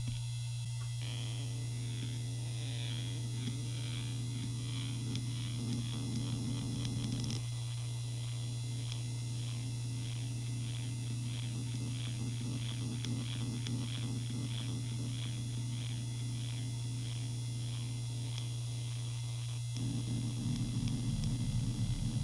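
Hard drive heads seek back and forth with rapid ticking and buzzing.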